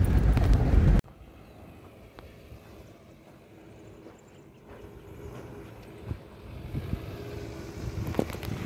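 An off-road vehicle approaches over loose dirt, growing louder as it nears.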